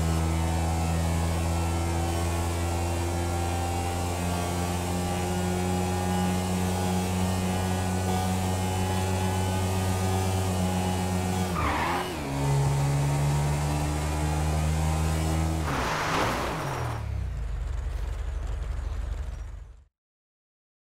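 A motorcycle engine hums steadily, then revs and slows down.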